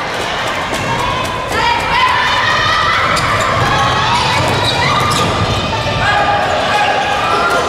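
Spectators and players shout and cheer in a large echoing hall.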